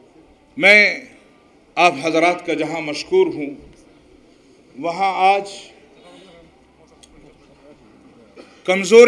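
An elderly man speaks forcefully into a microphone, heard through loudspeakers with pauses between phrases.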